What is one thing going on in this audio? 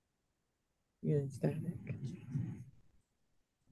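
A man speaks briefly over an online call.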